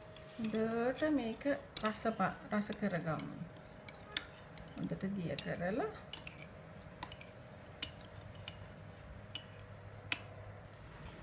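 A spoon clinks and scrapes against a small bowl.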